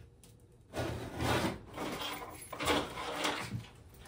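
A metal can is set down on a hard tabletop with a clunk.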